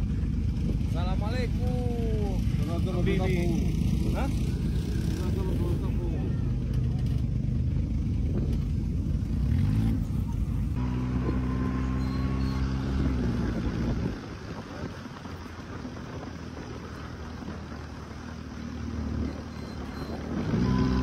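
A buggy engine rumbles and roars.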